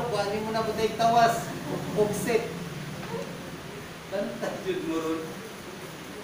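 A young man speaks calmly and slowly, echoing slightly in a hall.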